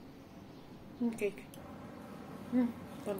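A young woman nearby makes short, quiet humming sounds.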